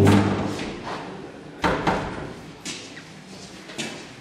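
A door opens and closes.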